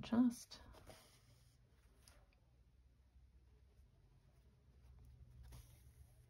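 Thread is pulled through cloth with a light scratching sound.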